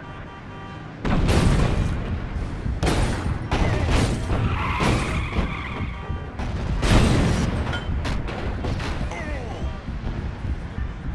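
Cars and debris smash and clatter.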